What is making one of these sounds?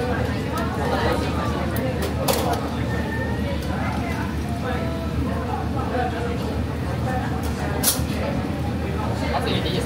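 Metal tongs clink against a pan.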